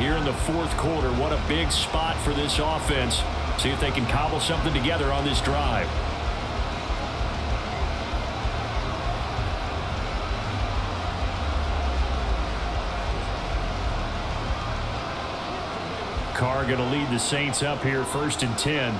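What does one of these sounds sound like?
A large stadium crowd murmurs and roars steadily in the background.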